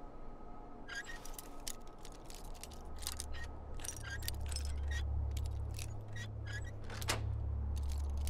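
A metal lock pick scrapes and clicks inside a lock.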